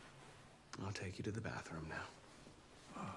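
A young man speaks calmly and softly up close.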